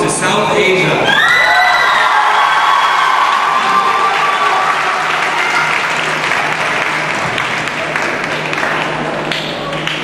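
An audience cheers and applauds in a large hall.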